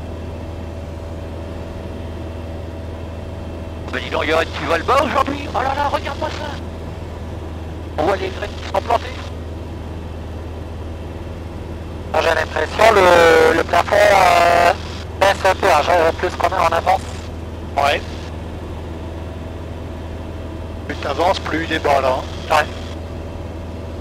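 A light aircraft's engine drones steadily.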